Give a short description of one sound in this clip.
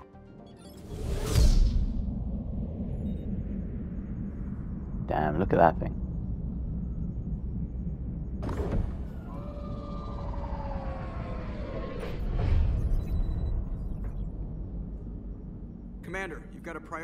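A spaceship engine hums with a low, steady rumble.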